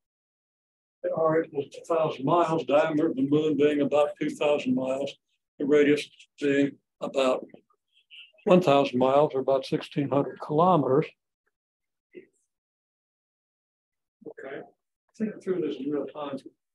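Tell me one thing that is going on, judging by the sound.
A man speaks calmly, as if lecturing, in short bursts with pauses.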